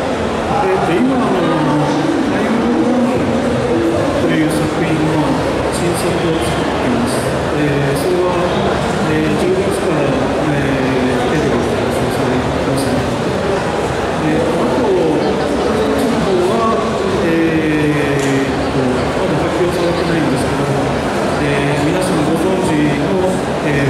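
A man speaks steadily through a microphone over loudspeakers.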